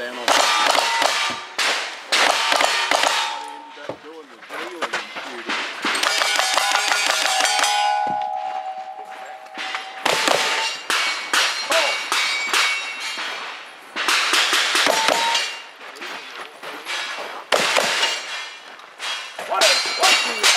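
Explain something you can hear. Gunshots crack rapidly outdoors, one after another.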